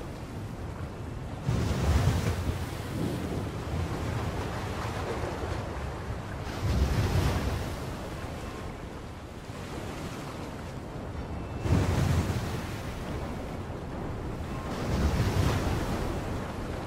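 Rough sea water churns and sloshes steadily.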